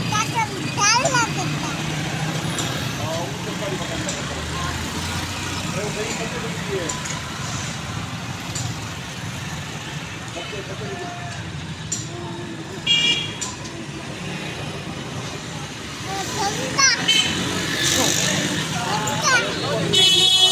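A young child laughs and babbles close by.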